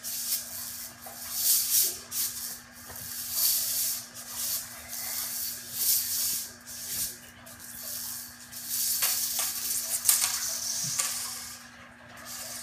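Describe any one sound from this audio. A plastic hoop swishes in repeated whooshes.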